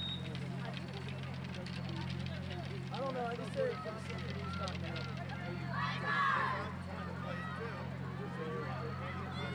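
Young women chatter and cheer together outdoors.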